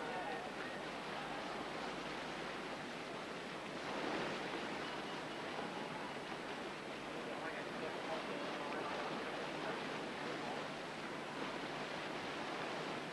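White water rushes and churns loudly.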